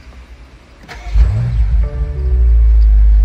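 A car engine roars to life.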